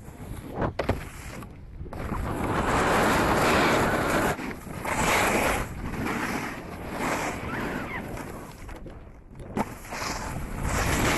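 A snowboard scrapes and hisses over packed snow.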